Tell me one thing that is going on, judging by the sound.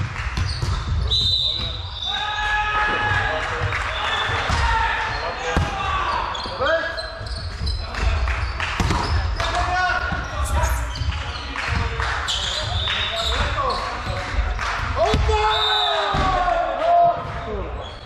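Men call out to each other in a large echoing hall.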